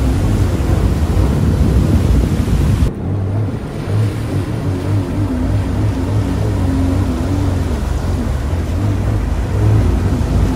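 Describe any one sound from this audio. A personal watercraft engine drones steadily close by.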